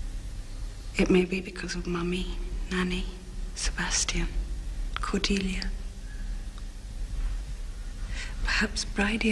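A young woman speaks softly and emotionally, close by.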